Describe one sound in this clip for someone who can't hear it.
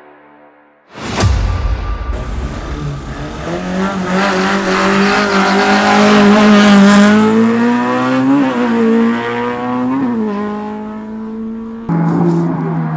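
A racing car engine revs loudly close by.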